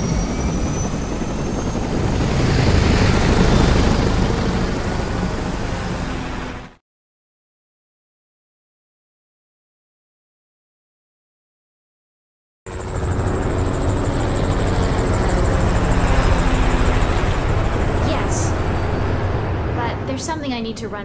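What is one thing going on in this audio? Helicopter rotors roar loudly overhead.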